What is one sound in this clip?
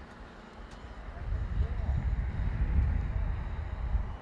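A car drives off outdoors.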